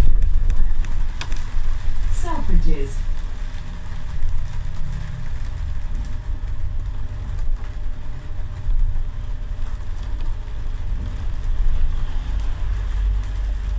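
A vehicle rumbles low and steadily as it drives.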